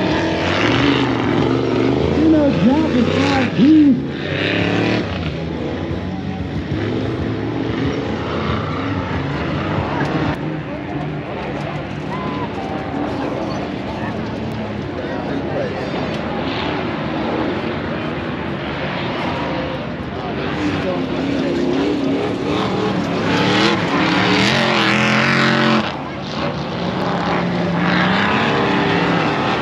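Off-road truck engines roar and rev in the distance.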